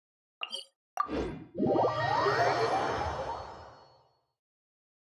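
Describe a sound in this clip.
A whooshing teleport effect swells with a rising shimmer.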